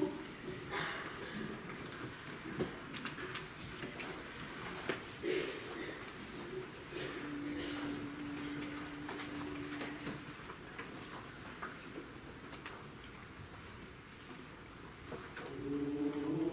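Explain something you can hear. An audience murmurs and shifts quietly in an echoing hall.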